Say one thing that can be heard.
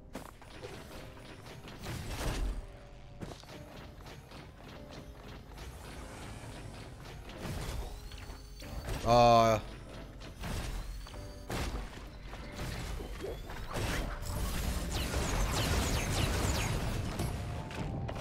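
Magic blasts crackle and whoosh in a video game.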